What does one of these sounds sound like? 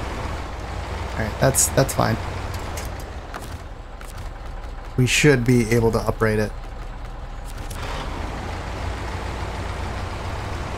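A heavy truck engine idles with a low, steady rumble.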